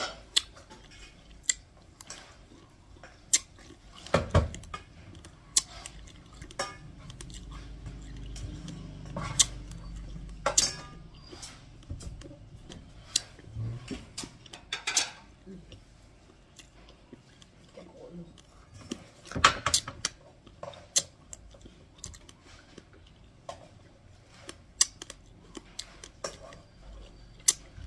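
A metal spoon scrapes and rustles through dry rice grains close by.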